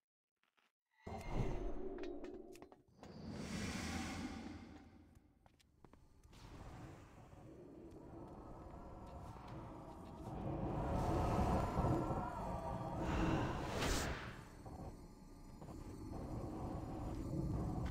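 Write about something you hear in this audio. Game battle sounds clash with spell blasts and weapon hits.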